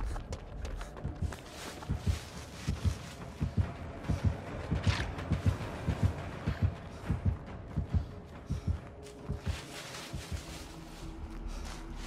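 Footsteps run quickly through grass and over soft ground.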